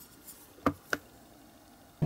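Small metal parts click together in someone's hands.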